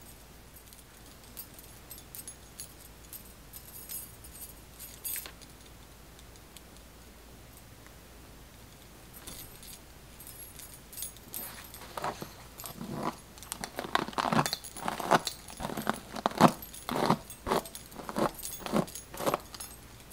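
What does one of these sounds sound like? Fingers rustle softly through long synthetic hair.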